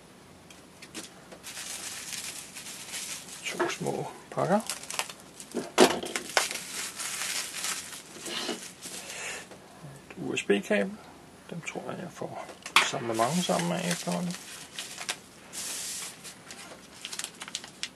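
Bubble wrap crinkles and rustles as hands unwrap small packages.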